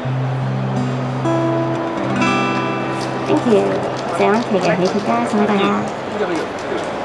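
An acoustic guitar plays chords.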